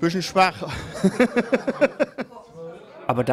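A middle-aged man laughs heartily, close to a microphone.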